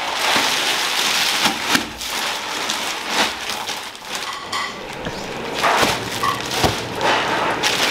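Soft dough thuds as it is pressed and lifted.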